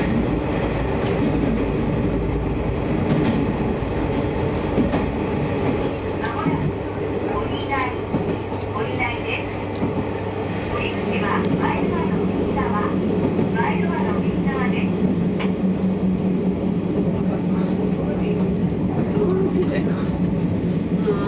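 A train rumbles steadily along its tracks, with a low drone.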